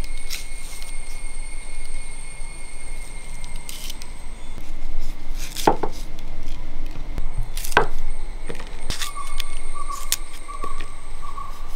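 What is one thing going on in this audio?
A knife snaps through green chillies.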